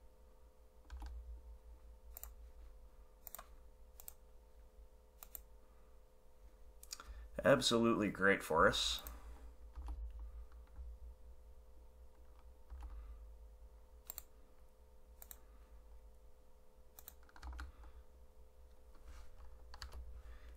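Short, sharp game clicks sound now and then as cards are played.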